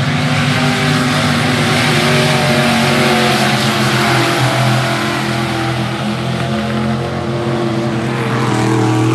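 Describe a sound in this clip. Race car engines roar loudly as they speed past.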